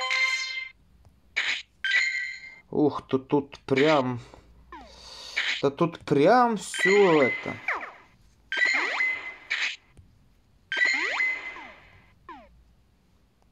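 Short bright electronic chimes ring out again and again.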